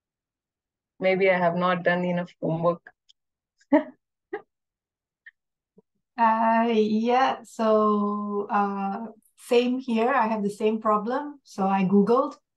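A woman reads aloud calmly, close to a microphone, in an online call.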